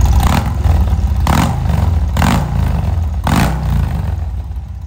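A motorcycle engine revs sharply several times.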